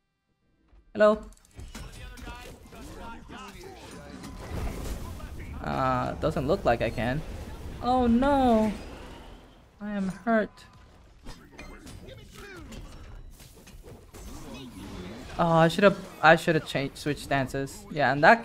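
Magical attacks whoosh and crackle in a fast fight.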